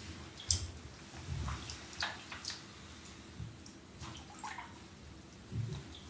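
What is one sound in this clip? Boots slosh and splash in shallow water.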